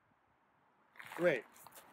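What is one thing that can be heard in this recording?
A man starts to speak close by.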